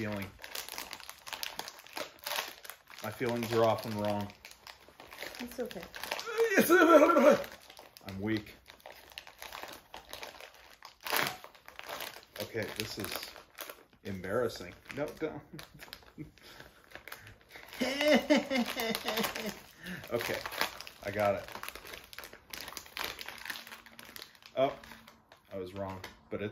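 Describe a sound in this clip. A plastic snack wrapper crinkles and rustles.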